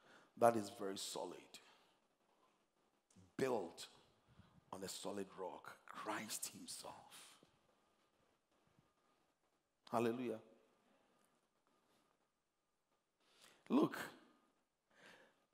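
A middle-aged man preaches with animation through a headset microphone, in bursts with pauses.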